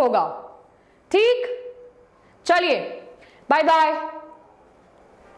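A young woman speaks brightly and close by.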